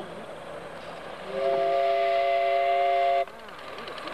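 Steam hisses from a miniature locomotive.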